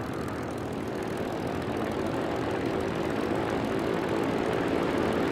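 A propeller plane's engine drones steadily and grows slightly louder.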